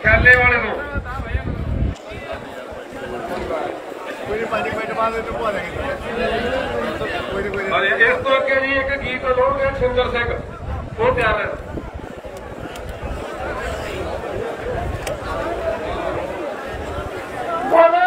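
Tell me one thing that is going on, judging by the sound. A man shouts slogans through a microphone outdoors.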